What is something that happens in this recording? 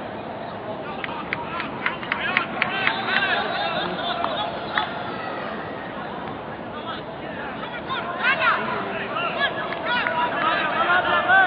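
Young men shout to each other from a distance across an open field.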